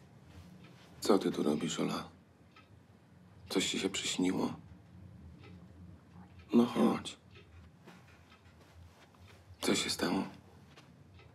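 A man speaks softly and calmly nearby.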